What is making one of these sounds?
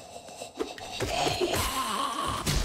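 A blade slashes through the air with a sharp swish.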